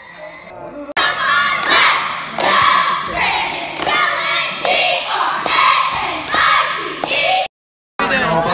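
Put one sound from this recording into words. A squad of young women chant loudly in unison in an echoing hall.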